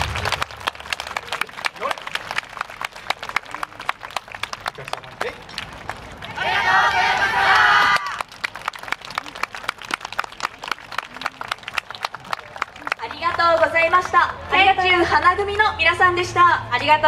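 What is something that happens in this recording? Wooden hand clappers clack in a quick rhythm.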